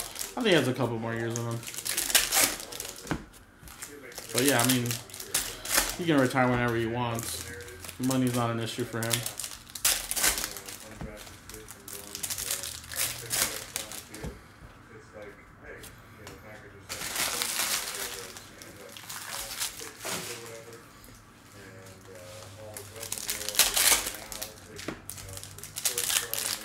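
Foil card wrappers crinkle and rustle as they are torn open.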